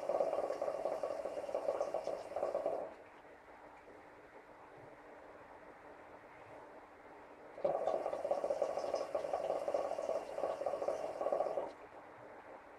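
Water bubbles and gurgles loudly in a hookah.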